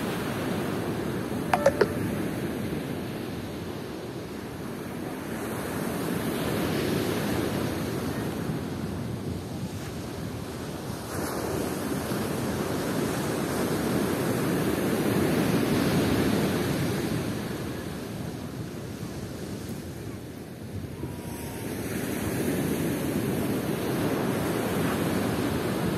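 Waves break and wash onto the shore in slow, swelling surges.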